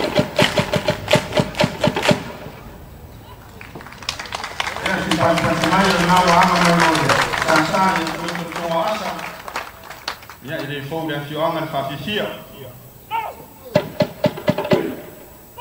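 A large group claps and slaps in a quick, sharp rhythm outdoors.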